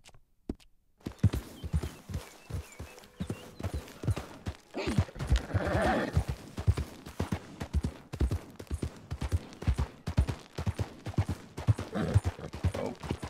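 Horse hooves thud in a steady gallop.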